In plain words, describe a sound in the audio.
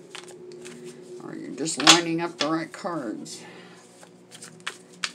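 Playing cards riffle and flick as a deck is shuffled by hand.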